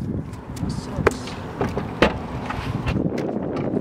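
A car boot slams shut.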